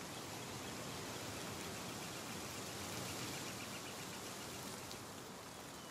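Footsteps swish softly through grass.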